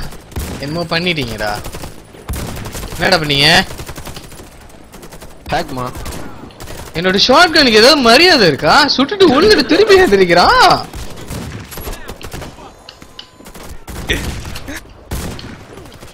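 Shotgun blasts ring out in sharp, separate bursts.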